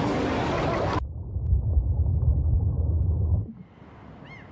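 Water churns and rumbles deep underwater.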